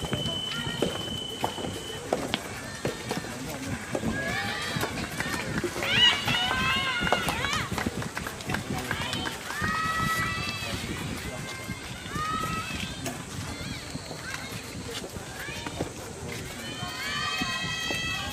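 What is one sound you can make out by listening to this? Tennis balls pop off rackets in a steady rally, outdoors.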